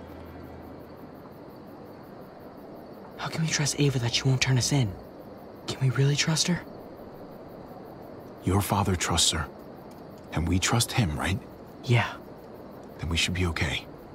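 A boy speaks quietly.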